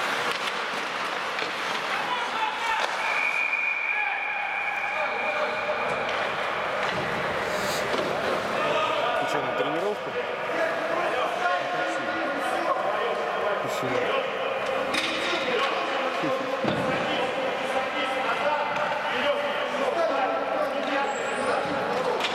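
Young men call out to each other in a large echoing arena.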